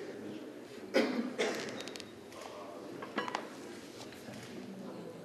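A man strains and shouts loudly.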